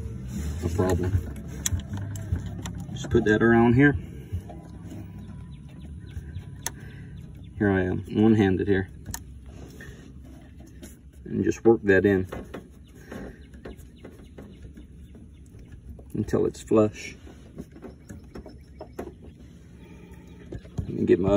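A wrench clinks and scrapes against metal fittings up close.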